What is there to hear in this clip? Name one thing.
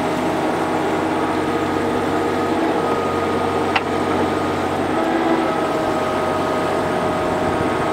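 Hydraulics whine as a mini excavator's boom moves.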